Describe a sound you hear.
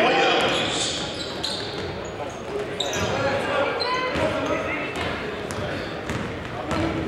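A crowd cheers and chatters in an echoing gym.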